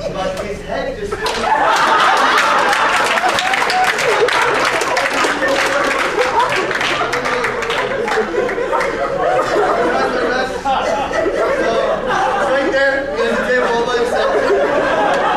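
A man speaks to an audience through a microphone in a large echoing room.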